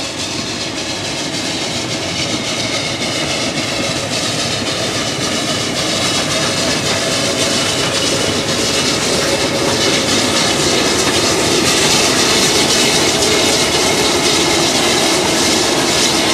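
Train wheels clatter rhythmically over rails.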